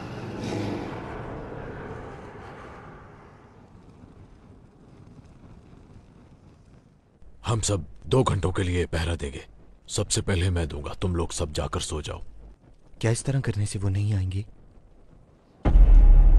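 A torch flame crackles and hisses.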